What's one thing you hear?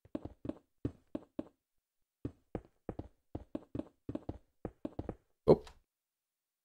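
Stone blocks are placed with quick, soft thuds in a game.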